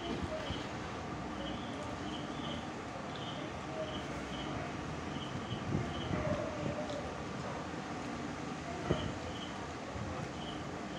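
Fingers scoop and squish rice on a plate.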